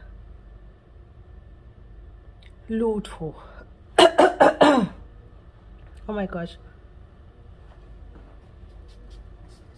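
A young woman sniffs deeply.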